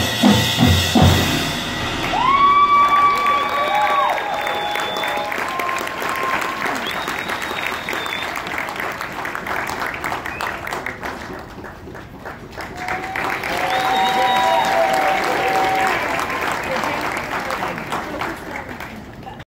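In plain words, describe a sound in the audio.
A marching band plays brass and percussion outdoors.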